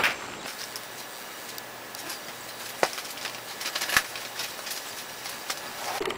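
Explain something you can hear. Magazine pages rustle as they are flipped.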